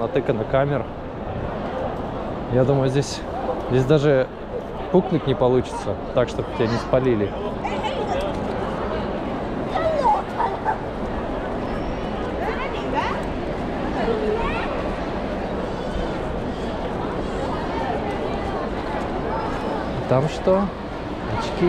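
A crowd of people chatters and murmurs outdoors.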